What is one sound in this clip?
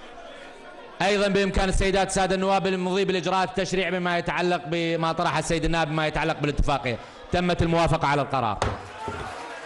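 A crowd of men chants loudly in a large hall.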